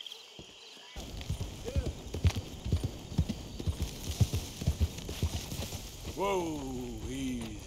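Horse hooves thud steadily on a dirt path.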